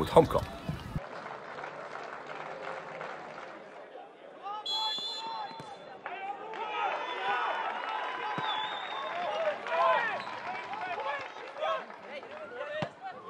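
A crowd murmurs in a stadium far off.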